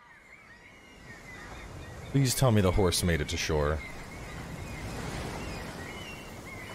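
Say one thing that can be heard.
Rough sea water churns and splashes.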